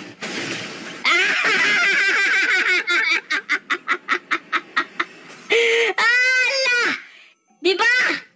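A young man laughs loudly and excitedly into a close microphone.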